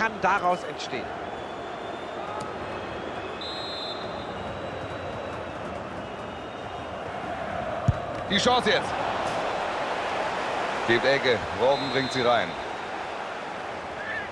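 A large crowd murmurs and cheers steadily in a big open stadium.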